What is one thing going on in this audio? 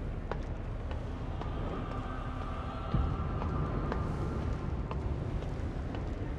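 Metal rungs clank as someone climbs a ladder.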